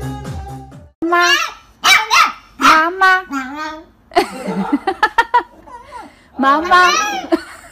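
A puppy yelps and howls in high, wavering cries.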